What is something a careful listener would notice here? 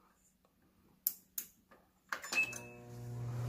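Microwave buttons beep as they are pressed.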